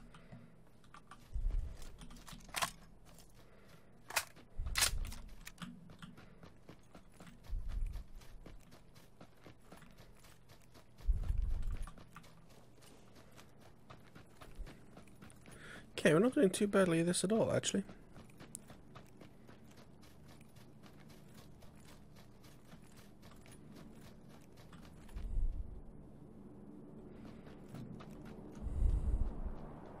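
Footsteps crunch over grass and dirt at a steady pace.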